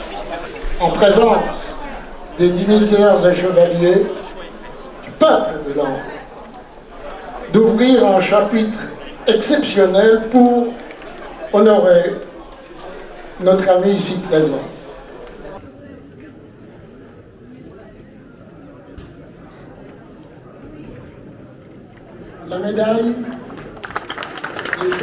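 A man speaks formally into a microphone in an echoing hall.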